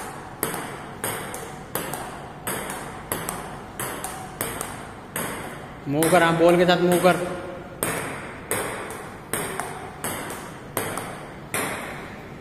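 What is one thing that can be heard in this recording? A table tennis ball clicks back and forth between paddles and bounces on the table in a steady rally.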